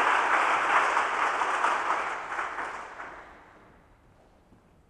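An audience applauds in a large hall, then the clapping fades away.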